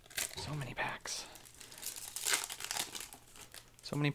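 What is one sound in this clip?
A foil wrapper crinkles as it is handled.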